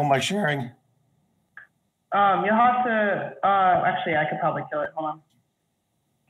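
An older man speaks calmly over an online call.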